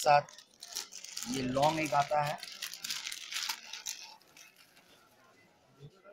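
Plastic wrapping rustles and crinkles.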